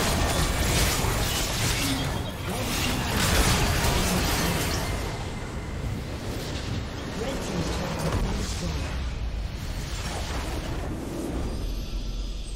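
Game spells and attacks crash and burst in a loud battle.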